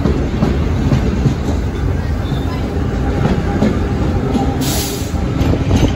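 Steel wheels clatter over rail joints.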